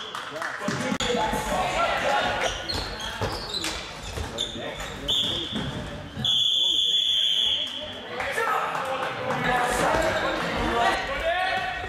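Young men shout to each other across the hall.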